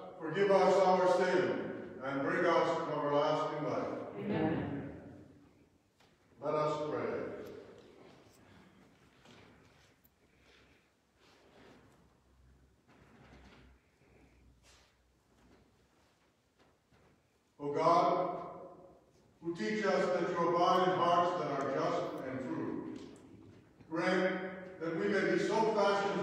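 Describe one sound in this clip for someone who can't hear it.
An elderly man chants and speaks through a microphone in a large echoing hall.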